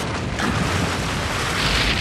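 Water gushes up in a spout.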